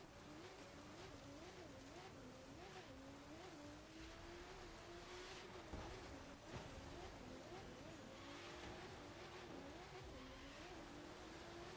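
Tyres skid and scrape over grass and dirt.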